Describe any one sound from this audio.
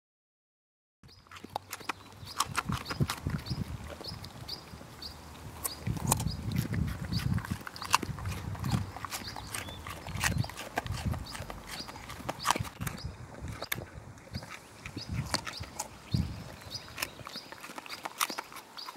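A dog crunches and chews a carrot close by.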